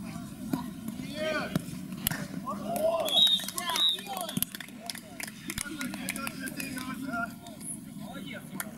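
Young men shout and cheer loudly outdoors.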